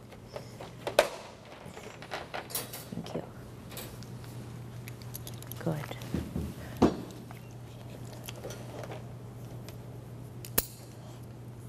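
A wire crate door rattles and clicks.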